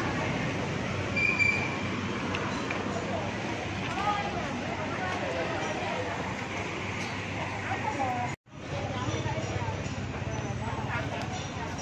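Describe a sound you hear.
A crowd of men and women chatters in a busy outdoor walkway.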